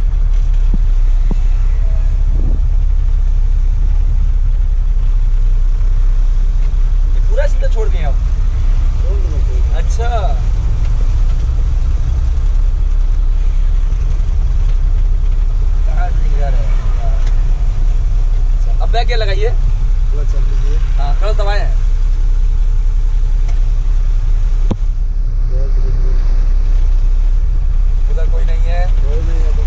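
A truck engine rumbles steadily, low and loud.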